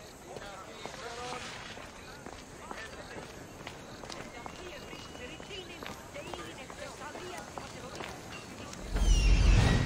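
Footsteps patter on stone.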